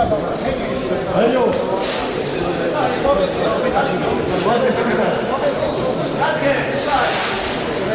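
A man gives urgent instructions up close in an echoing hall.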